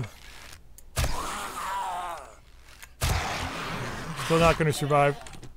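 Arrows hit with dull thuds.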